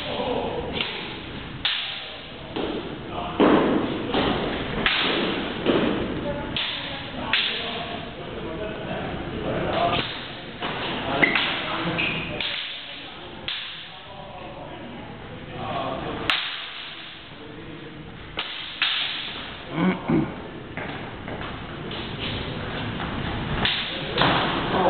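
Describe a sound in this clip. Wooden practice swords clack together in sharp knocks.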